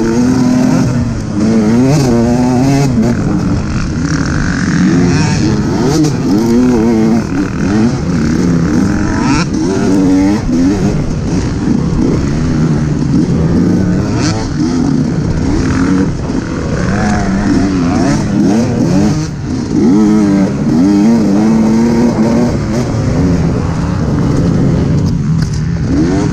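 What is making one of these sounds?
A dirt bike engine revs loudly up close, rising and falling as it shifts gears.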